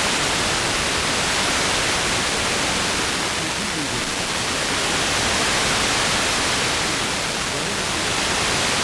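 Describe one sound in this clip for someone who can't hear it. Television static hisses loudly and steadily.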